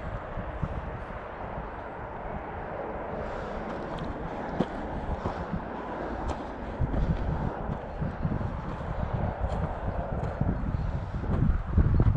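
Footsteps crunch on dry grass and pine needles.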